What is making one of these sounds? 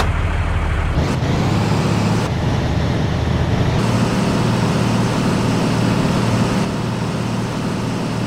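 A truck's diesel engine rumbles and revs as the truck pulls away.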